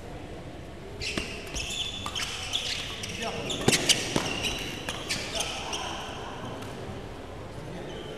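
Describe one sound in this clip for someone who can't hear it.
Shoes squeak sharply on an indoor court.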